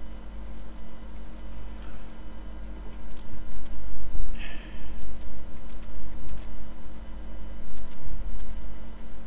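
A paintbrush brushes softly across paper.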